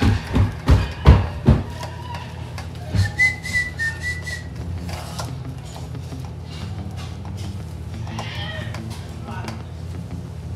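A spoon clinks and scrapes against a metal bowl.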